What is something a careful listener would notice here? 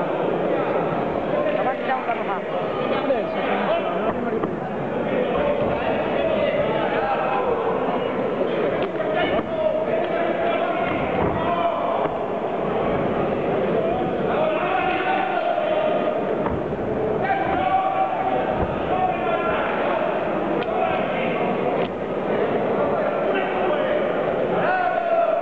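A crowd shouts and cheers in a large echoing hall.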